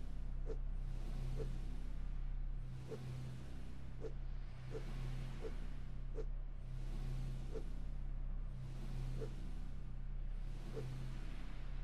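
Short soft interface blips sound again and again as items are moved.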